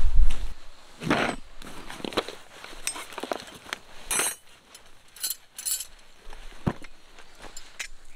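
Camping gear clinks and rattles inside a fabric bag.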